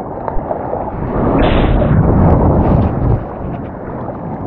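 A wave breaks and rushes with a loud roar.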